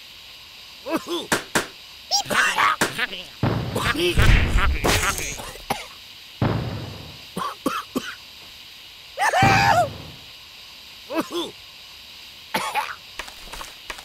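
Cartoon thuds and pops sound in quick bursts.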